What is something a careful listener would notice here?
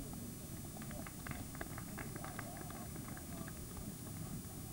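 Spectators clap briefly in the distance.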